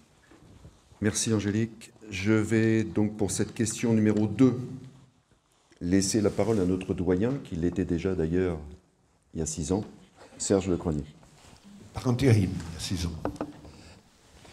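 An elderly man speaks calmly into a handheld microphone in an echoing hall.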